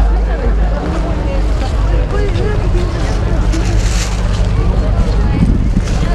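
A dense crowd of people chatters outdoors, with many voices overlapping.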